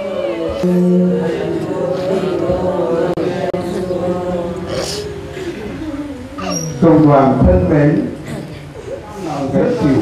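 A woman sobs and wails close by.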